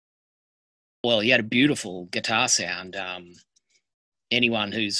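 A middle-aged man speaks calmly and close to the microphone, heard through an online call.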